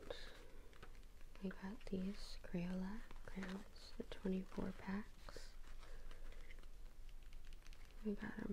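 A cardboard box rustles and taps as hands handle it.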